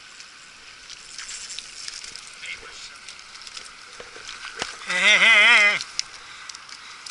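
A fish flaps and thumps on loose stones.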